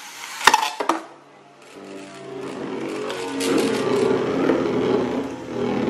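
Spinning tops whir and rattle steadily in a plastic bowl.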